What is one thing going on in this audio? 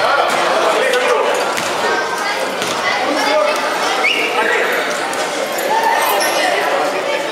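Basketball players' sneakers squeak on a wooden court.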